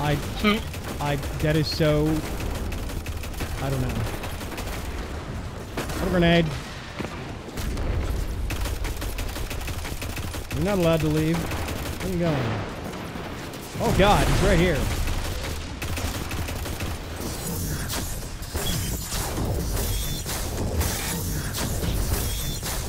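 Guns fire in rapid bursts with loud blasts.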